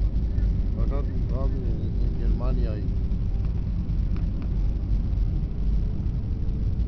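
The engines of a jet airliner roar steadily, heard from inside the cabin in flight.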